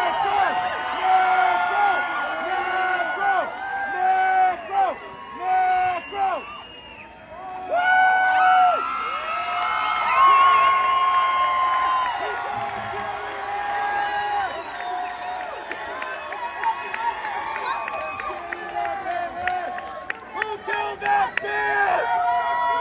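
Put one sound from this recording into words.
A large crowd cheers and sings along loudly in a big echoing hall.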